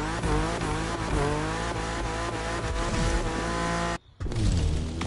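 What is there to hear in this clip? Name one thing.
A car engine revs and hums steadily.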